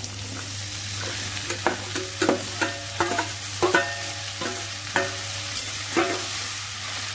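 Chopped vegetables tumble into a metal pan with soft thuds.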